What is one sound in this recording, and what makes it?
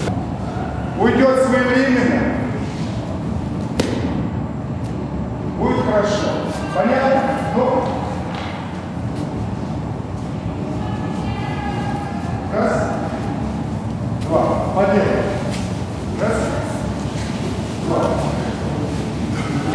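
A man speaks calmly, instructing, in a large echoing hall.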